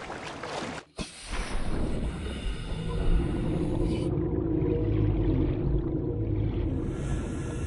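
Muffled underwater rumbling and bubbling surround a swimmer.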